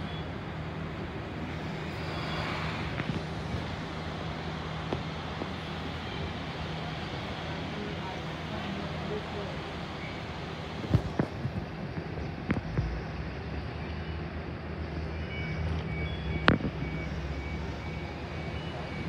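A train engine hums steadily while idling at a platform.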